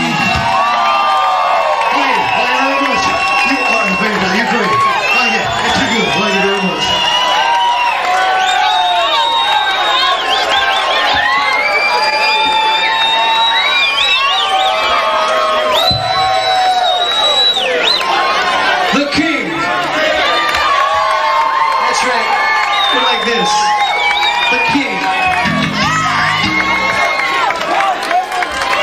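A crowd cheers and screams loudly in an echoing hall.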